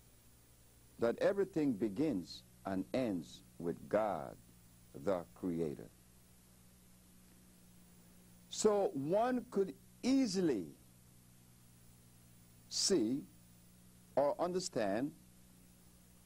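An elderly man speaks calmly into a microphone, pausing often.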